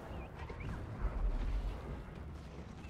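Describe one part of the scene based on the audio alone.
A deep booming blast rumbles.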